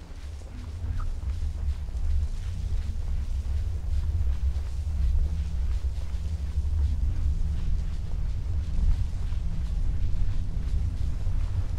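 Sand hisses softly as a figure slides down a dune.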